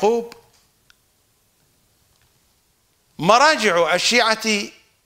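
An older man speaks calmly and clearly into a microphone.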